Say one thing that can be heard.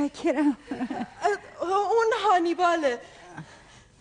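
An elderly woman speaks warmly and with animation, close by.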